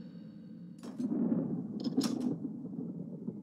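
Metal emblems clank into place in an iron gate.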